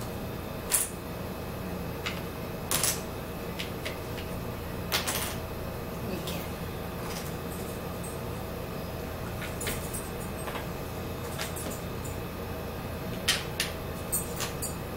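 Plastic puzzle pieces click and clack on a wooden table.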